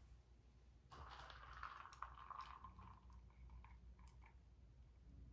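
A woman sips a drink and swallows.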